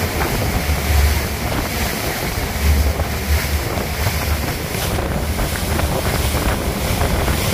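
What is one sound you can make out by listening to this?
Wind roars and buffets past.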